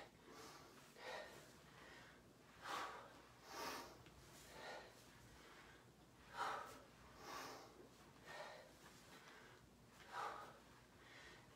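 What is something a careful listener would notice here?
Sneakers thud and scuff on a carpeted floor in quick steps.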